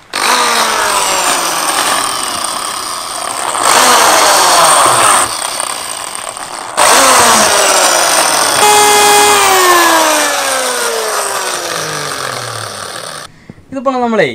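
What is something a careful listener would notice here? An electric drill whirs loudly as it bores into rubber.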